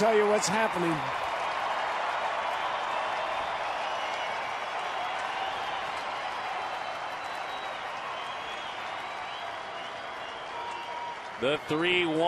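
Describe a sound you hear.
A large stadium crowd cheers and claps.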